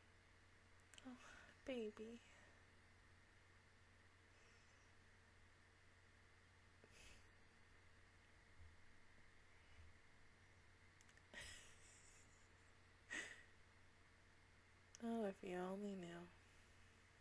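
A young woman speaks briefly and softly into a close microphone.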